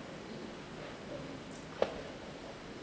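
A chess piece is set down on a wooden board with a sharp click.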